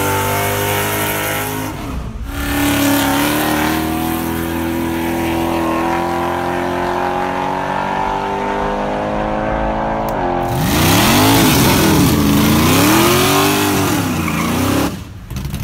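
A car engine roars loudly at full throttle.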